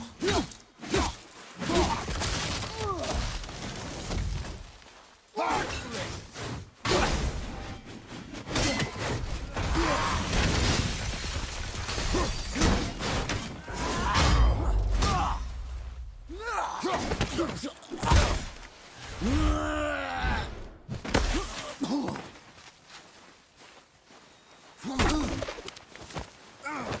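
A man grunts and shouts with effort.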